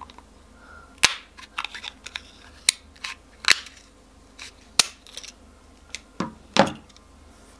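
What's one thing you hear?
Scissors snip through hard plastic with sharp clicks.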